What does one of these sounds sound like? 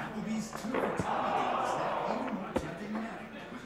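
A puck clicks sharply in a hockey video game.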